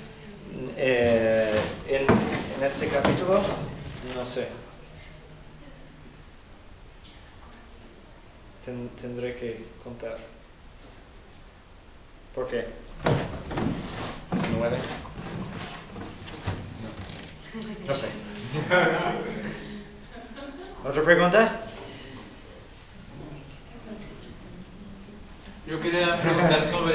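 A man speaks calmly, pausing between phrases.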